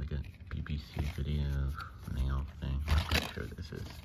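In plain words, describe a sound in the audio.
A paper insert rustles as it is pulled from a case.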